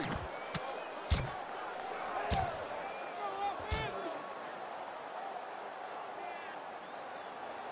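A stadium crowd murmurs steadily.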